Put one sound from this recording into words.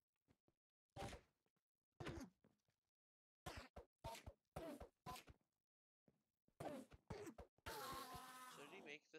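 A sword swishes and strikes a creature.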